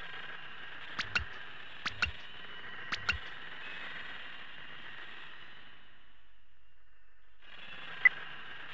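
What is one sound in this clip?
Short electronic menu beeps sound a few times.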